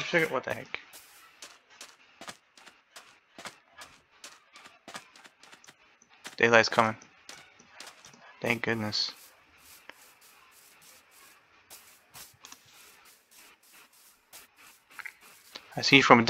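Footsteps tread steadily on grass and sand.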